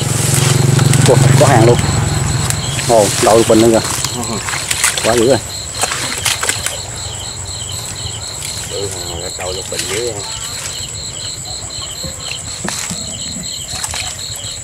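Leaves rustle as hands push through plants.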